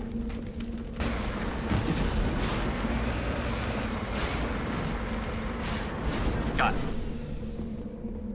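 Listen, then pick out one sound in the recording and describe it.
A vehicle engine rumbles and roars.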